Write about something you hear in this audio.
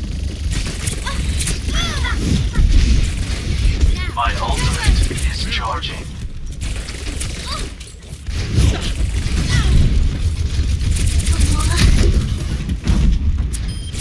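Two energy pistols fire rapid bursts of shots.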